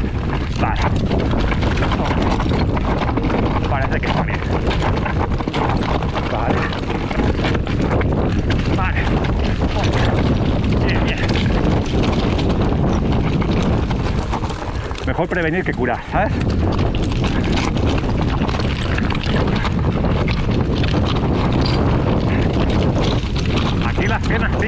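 A bicycle frame and chain clatter over bumps.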